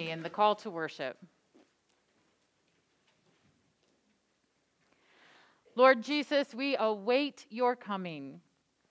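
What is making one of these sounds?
A woman speaks calmly into a microphone, reading out.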